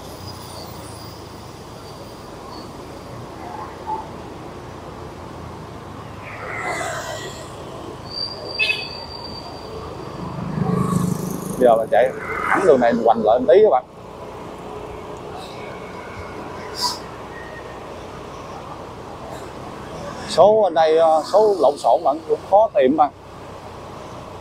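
A motorbike engine hums steadily as it rides along.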